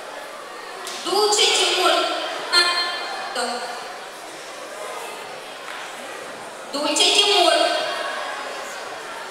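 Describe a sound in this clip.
A man shouts loudly in a large echoing hall.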